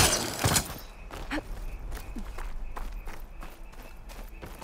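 Footsteps tread on soft ground.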